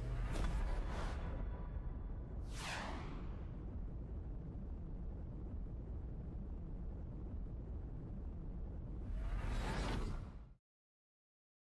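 Flames whoosh and roar.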